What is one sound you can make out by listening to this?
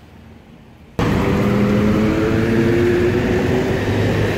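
Motorbike engines hum as they ride past.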